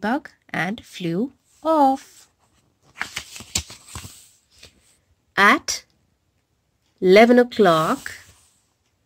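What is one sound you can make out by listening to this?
A woman reads a story aloud close by, with animation.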